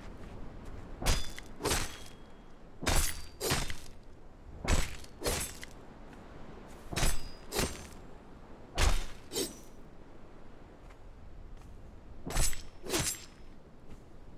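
A blade chops repeatedly into a carcass.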